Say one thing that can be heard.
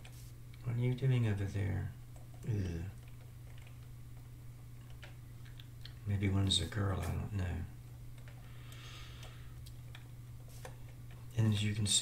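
An elderly man talks calmly into a close microphone.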